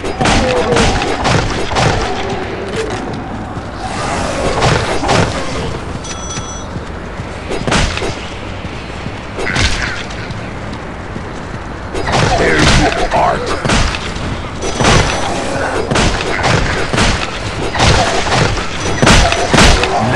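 Zombies growl and groan.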